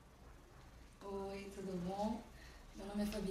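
A young woman speaks playfully close by.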